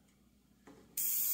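An airbrush sprays with a steady hiss.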